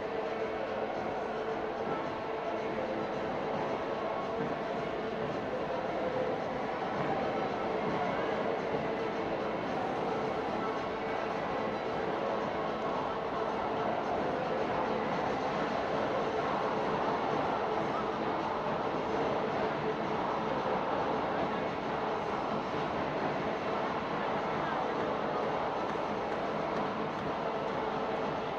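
Volleyballs thump and bounce on a court in a large echoing hall.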